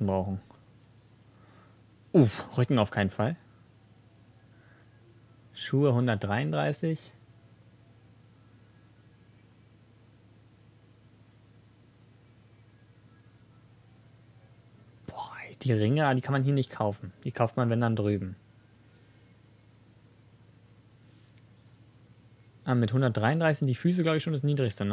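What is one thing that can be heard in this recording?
A young man talks casually into a nearby microphone, in short bursts with pauses.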